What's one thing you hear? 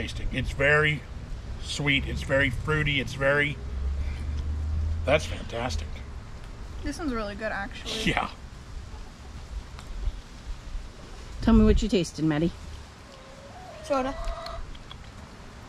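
An older man talks calmly, close by.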